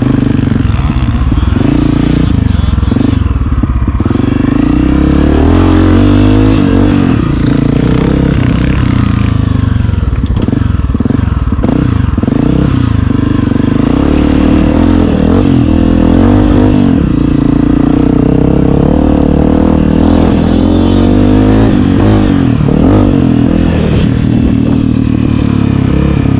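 Tyres churn through loose dirt and mud.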